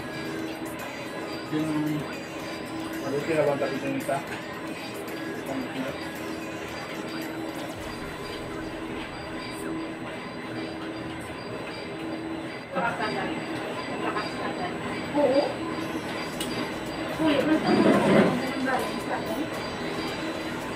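Spoons and forks clink against plates.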